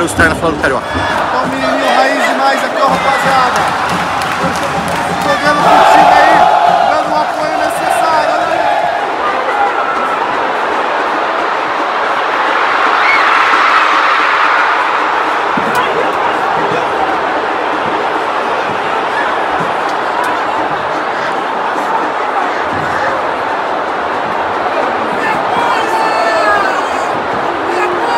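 A crowd of fans roars and shouts all around.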